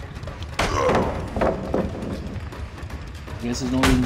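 Wooden boards crack and clatter as they are smashed.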